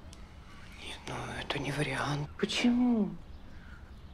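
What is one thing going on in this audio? A younger woman answers quietly close by.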